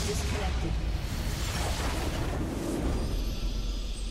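Triumphant video game music swells up.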